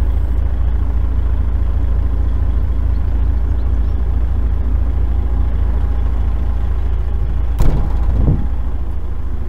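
A truck engine idles close by with a low, steady rumble.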